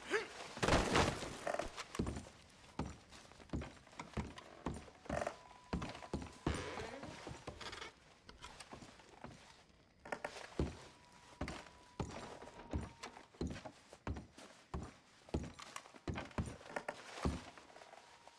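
Heavy footsteps thud on wooden floorboards.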